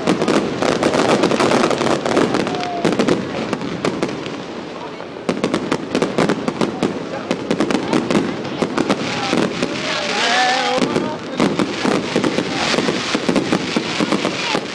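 Fireworks whistle as they shoot upward.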